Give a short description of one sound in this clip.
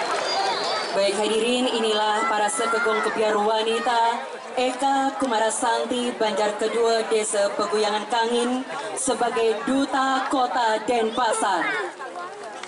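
A chorus of young women sings together.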